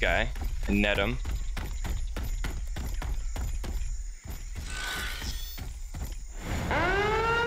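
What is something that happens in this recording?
Heavy footsteps thud quickly on a hard floor.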